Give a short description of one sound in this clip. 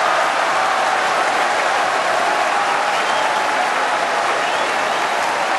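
A large crowd murmurs and chatters loudly in an echoing arena.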